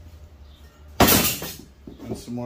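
A metal pipe clanks against a hard surface.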